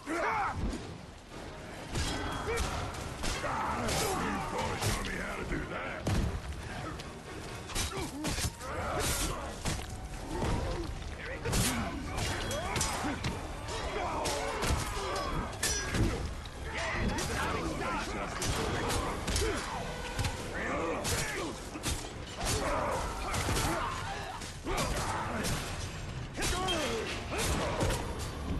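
Metal blades clang and slash in a fight.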